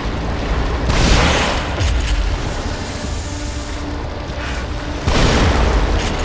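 A shotgun fires with loud, echoing blasts.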